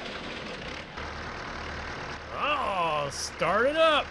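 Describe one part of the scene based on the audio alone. A tractor engine idles with a low rumble.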